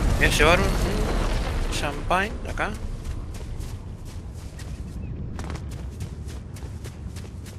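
Footsteps patter quickly over dry ground.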